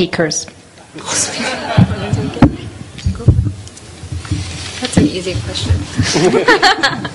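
A group of people laugh.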